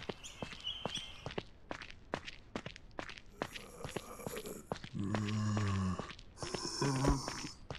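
Footsteps thud quickly on pavement.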